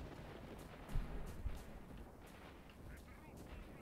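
A fire crackles.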